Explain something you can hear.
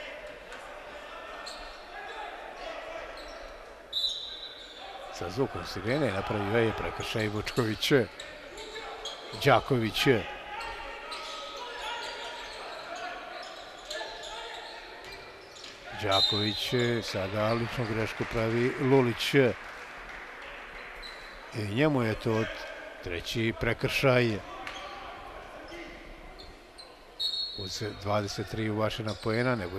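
A small crowd murmurs in a large hall.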